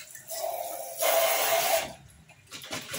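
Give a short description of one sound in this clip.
Water splashes loudly against a glass.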